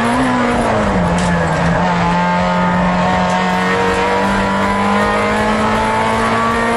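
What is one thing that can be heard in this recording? A car engine roars loudly close by, its pitch dipping then holding steady.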